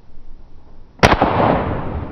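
An air rifle fires once with a sharp crack.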